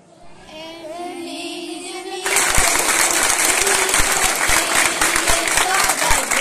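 A group of young girls sings together.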